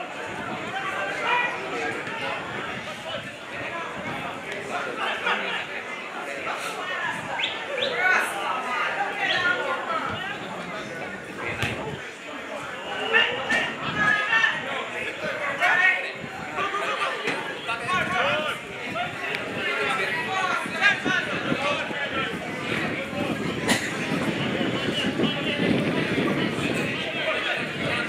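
Spectators chat nearby in a crowd.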